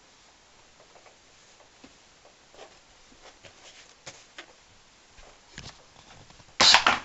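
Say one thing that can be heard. Clothes rustle as they are handled in a box.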